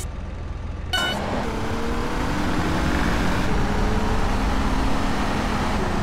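A car engine roars as the car drives off over dirt.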